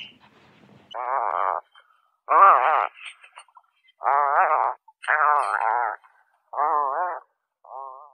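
A puffin makes deep, rattling groans.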